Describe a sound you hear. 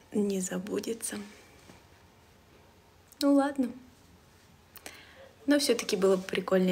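A young woman speaks casually and close to a microphone, in short bursts with pauses.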